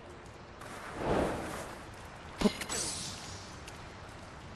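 A shimmering magical whoosh sounds.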